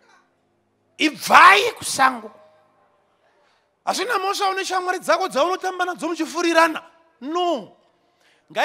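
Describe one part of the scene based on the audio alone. A man preaches forcefully into a microphone, heard through loudspeakers.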